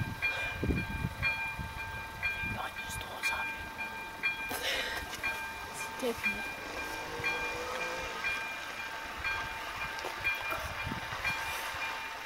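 A level crossing bell rings steadily in quick, even strokes.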